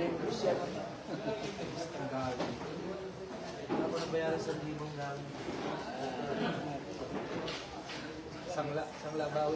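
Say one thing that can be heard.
A crowd of people chatter and talk loudly.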